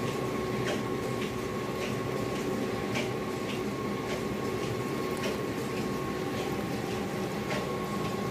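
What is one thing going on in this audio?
Water splashes and sloshes as a man moves a trap through it.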